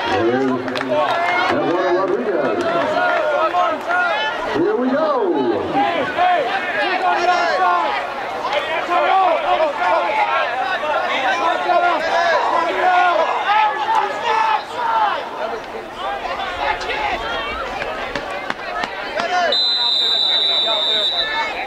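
A crowd of people chatter and call out nearby, outdoors.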